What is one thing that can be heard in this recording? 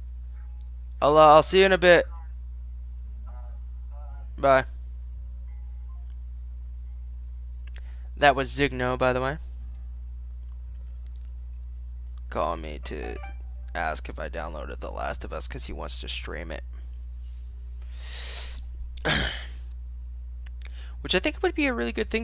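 A man talks into a microphone with animation, in short bursts.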